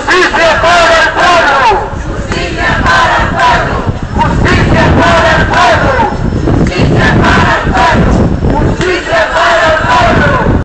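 A crowd of adults chants loudly outdoors.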